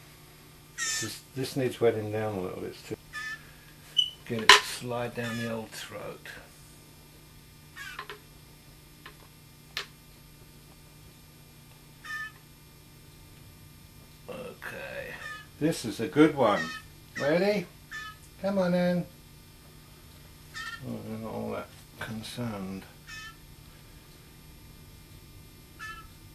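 A young bird chirps in short, high peeps.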